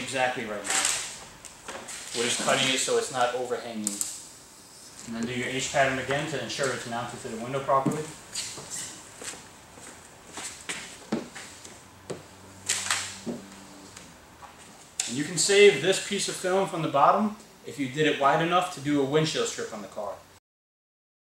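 Tinting film crinkles and rustles under a man's hands.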